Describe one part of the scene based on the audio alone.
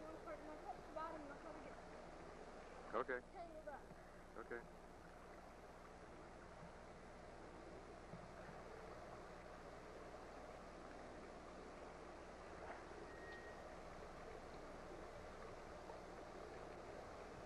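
Water splashes and sloshes around a child wading in a pool.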